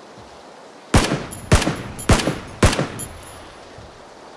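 Rifle shots crack in a quick burst of four.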